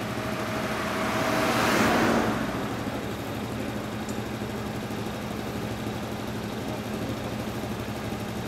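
Motorcycle engines idle steadily nearby.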